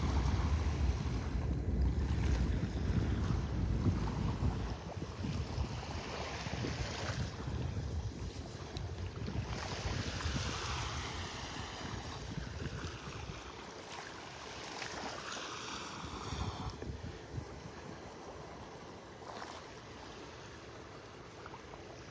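Small waves lap gently against the sandy shore.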